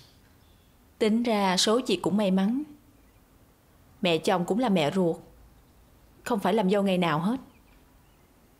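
A young woman speaks calmly nearby.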